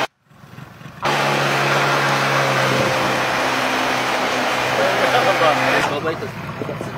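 A motorboat engine hums steadily.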